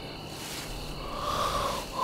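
A young woman blows softly onto her fingers.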